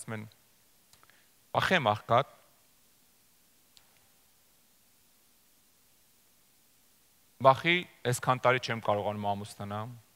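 A middle-aged man speaks calmly through a microphone, with long pauses.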